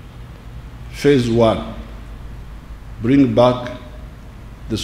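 An elderly man speaks slowly and deliberately through a microphone and loudspeakers, with pauses between phrases.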